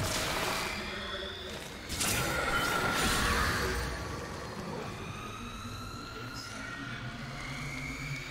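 Magic spells whoosh and crackle during a fight.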